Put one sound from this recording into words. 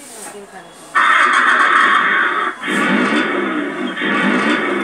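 A toy car plays loud, tinny electronic sounds from its small speaker.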